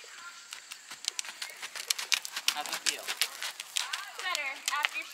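Horses' hooves thud and clop on soft dirt.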